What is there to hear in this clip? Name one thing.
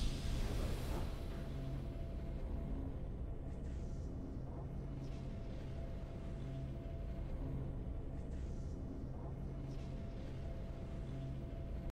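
Triumphant music plays softly with a slow beat.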